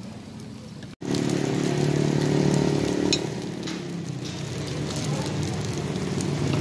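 Oil sizzles and bubbles in a hot pan.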